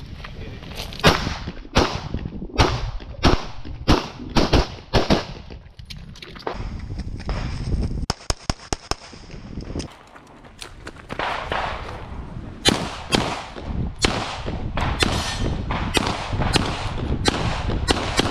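A pistol fires rapid shots outdoors, each crack sharp and loud.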